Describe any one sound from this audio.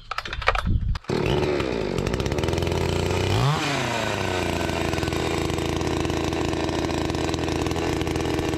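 A chainsaw engine starts and runs at a steady idle.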